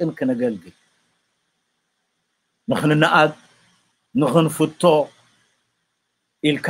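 An older man speaks calmly in short phrases over an online call.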